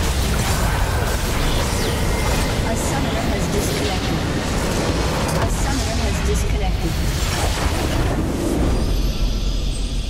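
Game spell effects crackle and explode in a fight.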